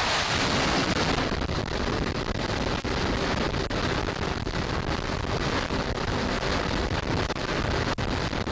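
A jet engine roars loudly at full power.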